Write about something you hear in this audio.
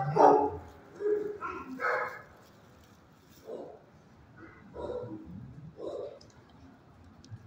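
A dog sniffs close by.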